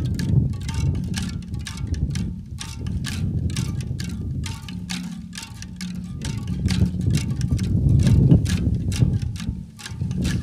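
Bamboo zithers give a deep, humming drone.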